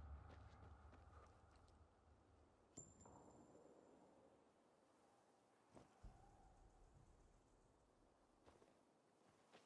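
Footsteps rustle through dense grass and ferns.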